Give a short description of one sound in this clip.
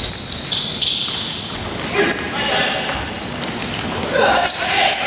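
Young men call out to each other across a large echoing hall.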